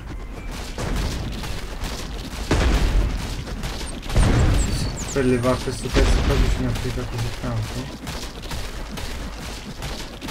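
An axe chops hard against a wooden wall.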